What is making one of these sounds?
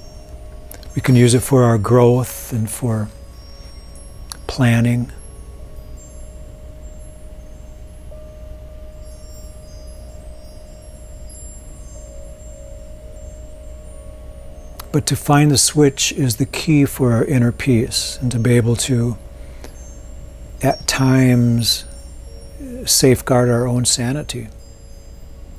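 A man speaks calmly and slowly, close to a microphone, with long pauses.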